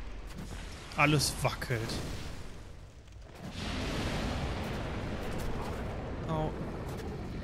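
A young man speaks briefly and with animation into a close microphone.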